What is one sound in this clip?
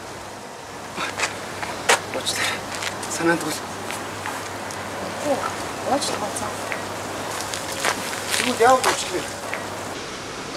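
A young man speaks apologetically nearby.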